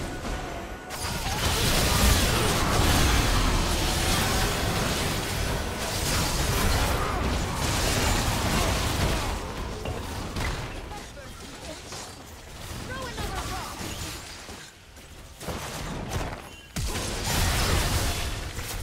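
Spell blasts and impacts crash and whoosh during a busy game fight.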